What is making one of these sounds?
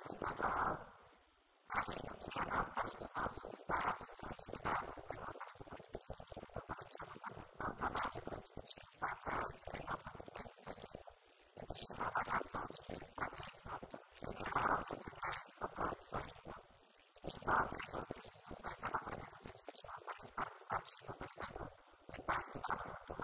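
A young woman speaks calmly and steadily into a microphone, heard through a loudspeaker.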